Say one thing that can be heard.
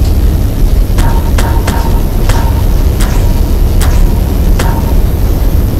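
A tool gives short sharp zaps, one after another.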